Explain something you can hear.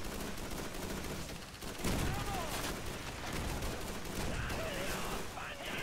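A low rumble of battle rolls on steadily.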